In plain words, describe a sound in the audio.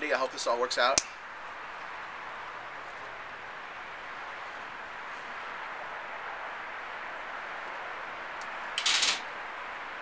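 A torch lighter hisses steadily.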